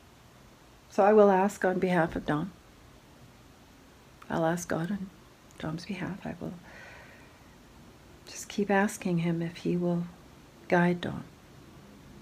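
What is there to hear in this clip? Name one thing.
A middle-aged woman speaks calmly close by, in short bursts with pauses.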